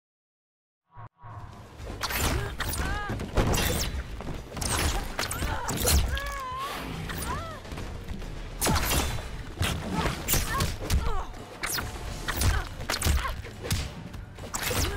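Heavy punches and kicks land with loud thuds and smacks.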